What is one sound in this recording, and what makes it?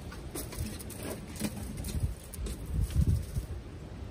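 Aluminium foil crinkles as it is handled.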